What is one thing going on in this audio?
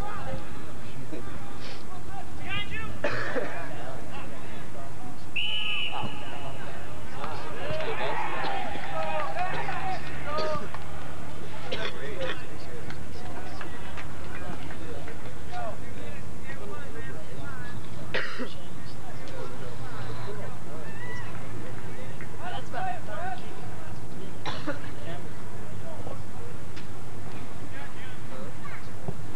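Young players shout to each other across an open field outdoors.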